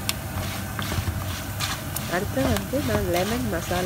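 A spatula stirs and scrapes peanuts in a metal pan.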